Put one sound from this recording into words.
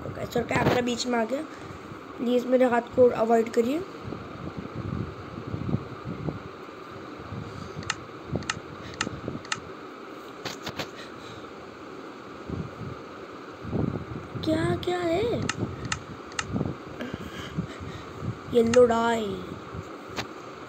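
A young boy talks close to a microphone.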